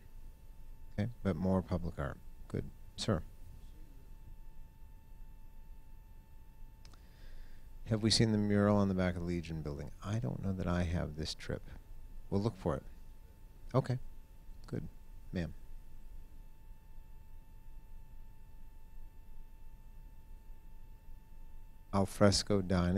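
A middle-aged man speaks calmly into a microphone in a large room, with pauses.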